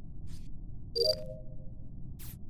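A card reader beeps.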